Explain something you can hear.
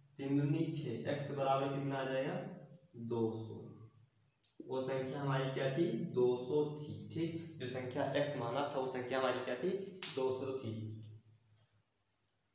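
A young man speaks calmly close by, explaining.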